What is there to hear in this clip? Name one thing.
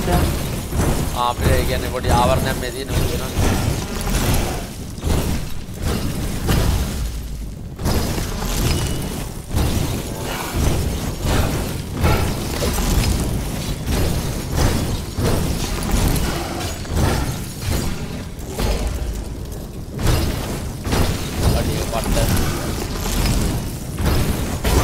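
Sword strikes clash and thud in a fast fight.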